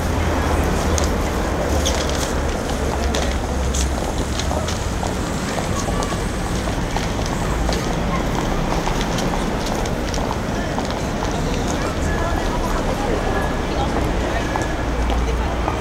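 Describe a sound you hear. Footsteps of passersby tap on pavement close by.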